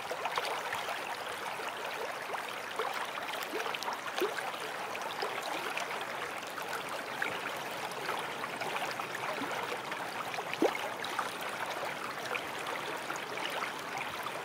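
A waterfall rushes over rocks.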